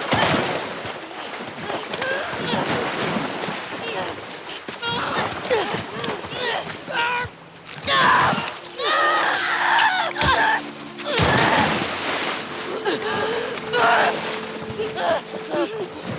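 A young man chokes and gasps for breath.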